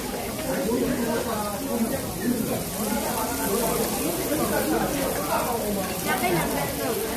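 Young people talk and chatter close by.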